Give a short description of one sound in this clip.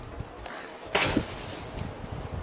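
A snowboarder crashes down into snow with a thud.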